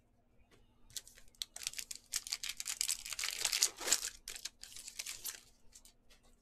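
A foil wrapper crinkles and tears loudly.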